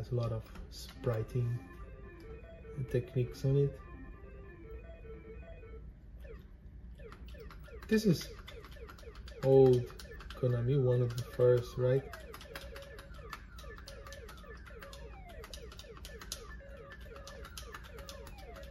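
Chiptune video game music and electronic sound effects play from a television speaker.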